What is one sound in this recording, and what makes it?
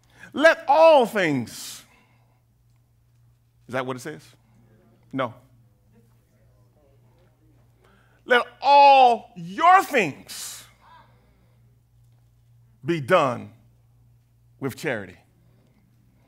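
A man preaches with animation through a microphone, in bursts with long pauses.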